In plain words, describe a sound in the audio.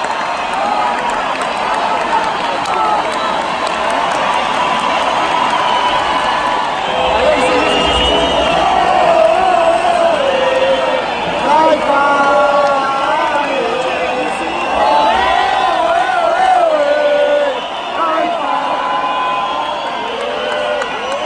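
A live band plays music through loudspeakers.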